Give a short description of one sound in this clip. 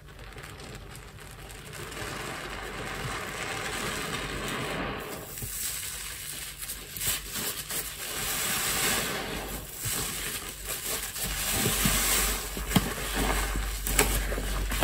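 Hands squish and squeeze a soapy sponge, with foam crackling and squelching close up.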